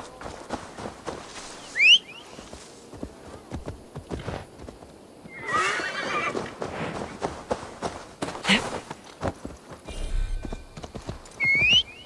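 Footsteps tread through grass and brush.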